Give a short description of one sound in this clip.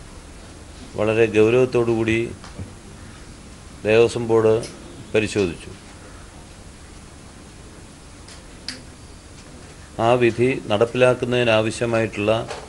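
A middle-aged man speaks calmly into microphones, pausing between phrases.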